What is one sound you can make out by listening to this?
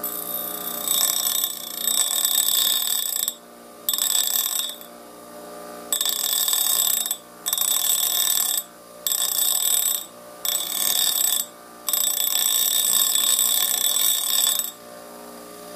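Metal grinds loudly against a spinning wheel in repeated harsh bursts.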